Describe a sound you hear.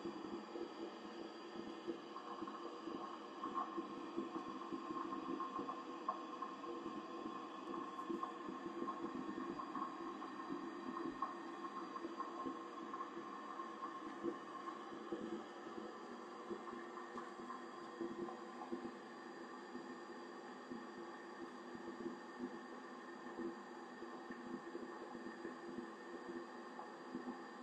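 A gas water heater hums and whirs steadily up close.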